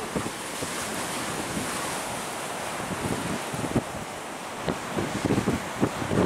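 Strong wind gusts and buffets across open ground.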